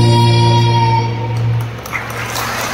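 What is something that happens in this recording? A choir of children sings through loudspeakers in a large hall.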